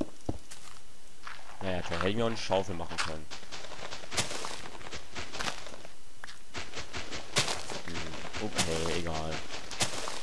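Dirt and grass crunch as blocks are dug out.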